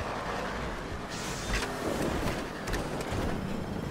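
A car crashes and scrapes against a wall.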